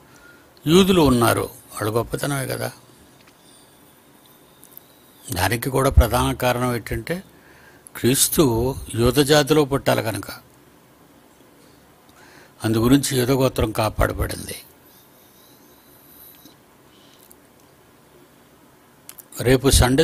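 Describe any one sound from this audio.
An elderly man speaks calmly into a close microphone, in short bursts with pauses.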